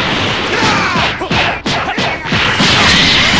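Punches and hits thud in quick succession.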